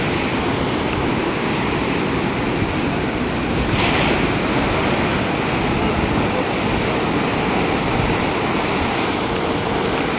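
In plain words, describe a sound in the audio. Waves break and crash onto the shore.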